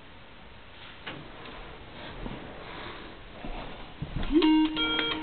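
Clothing rustles and bumps close by as a man gets up from a chair.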